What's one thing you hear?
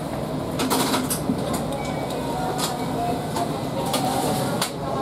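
A train's motor hums and rumbles steadily.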